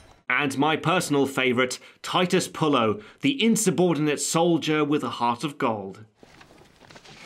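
A man speaks calmly and clearly, close to a microphone.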